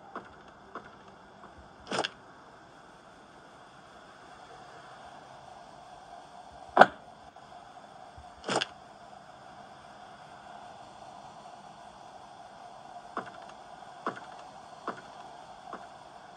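Fingertips tap lightly on a glass touchscreen.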